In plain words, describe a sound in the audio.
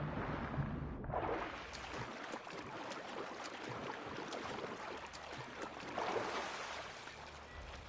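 Water splashes and churns as someone swims.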